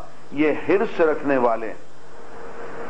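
An elderly man speaks slowly and deliberately into a microphone.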